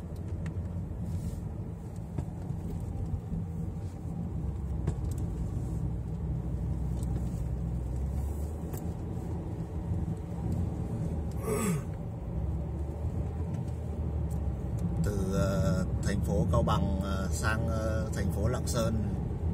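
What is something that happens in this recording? A car's engine hums steadily, heard from inside the car.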